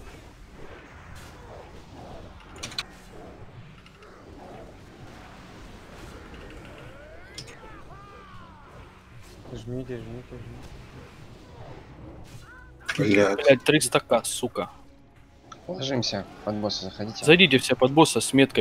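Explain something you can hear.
Magic spells crackle and clash amid a battle's clanging hits.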